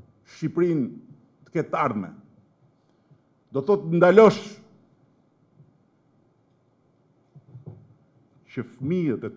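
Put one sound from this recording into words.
A middle-aged man speaks slowly and firmly into a microphone, with long pauses.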